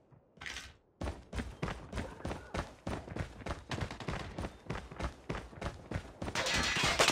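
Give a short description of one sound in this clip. Footsteps thud quickly on hard ground.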